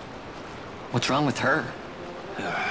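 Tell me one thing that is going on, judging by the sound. A man asks a question in a low voice.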